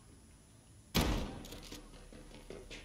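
A rifle fires a single loud shot indoors.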